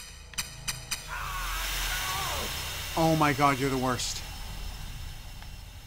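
Steam hisses loudly and slowly fades.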